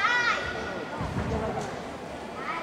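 A gymnast's feet thud on a balance beam.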